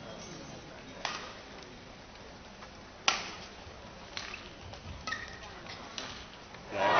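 A shuttlecock is struck sharply with a racket, echoing in a large hall.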